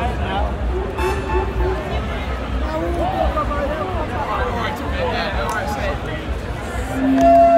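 A band plays loud live music through big loudspeakers.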